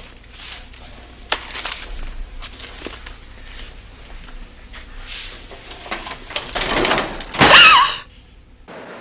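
Papers rustle as they are leafed through.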